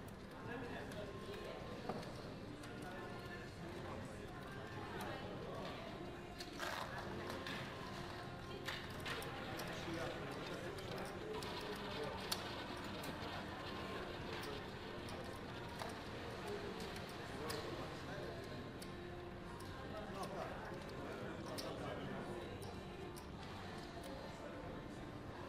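Casino chips click and clatter together.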